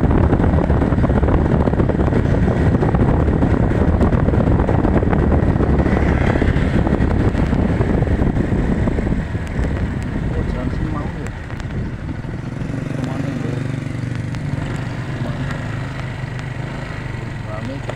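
Wind rumbles and buffets against the microphone while moving along a road.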